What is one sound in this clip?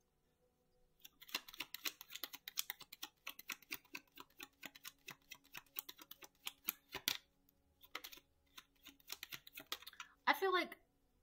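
Playing cards riffle and flick quickly while being shuffled.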